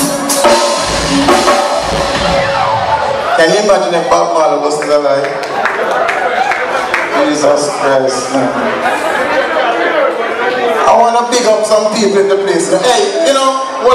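A man sings loudly into a microphone over a live band.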